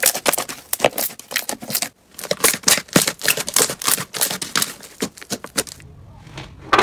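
Sticky slime crackles and pops as hands squeeze and stretch it.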